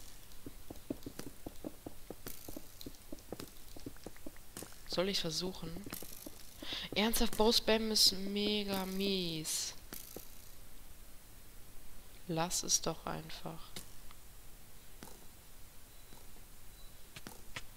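A player character places blocks with soft, quick clicks.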